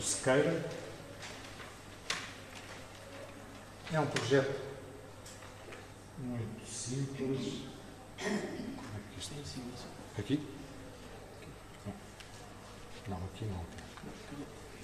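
A man speaks into a microphone in a room with a slight echo, with pauses.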